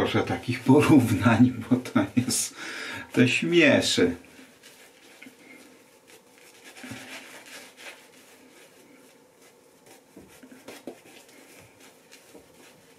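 A shaving brush swishes and lathers against stubble.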